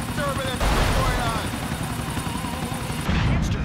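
A rocket whooshes through the air.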